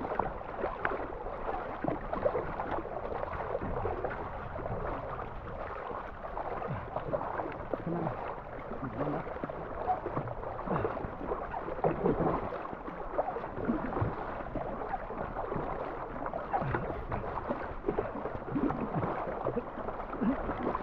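A paddle splashes rhythmically in the water, close by.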